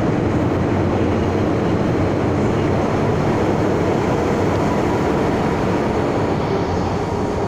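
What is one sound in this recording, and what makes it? A train rumbles loudly past, echoing through an underground station.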